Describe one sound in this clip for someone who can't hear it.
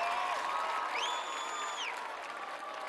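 A person in a crowd whistles shrilly.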